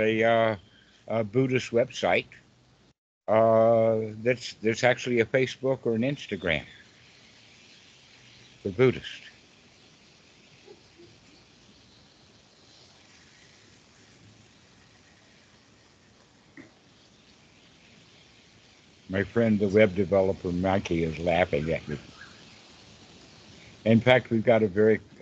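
A young man talks over an online call.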